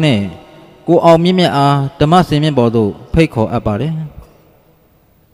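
An elderly man speaks calmly and clearly into a microphone.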